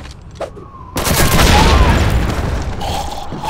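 A single rifle shot cracks.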